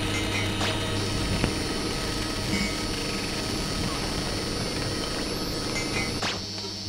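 Electronic music plays with dense, droning tones and scattered clicks and bleeps.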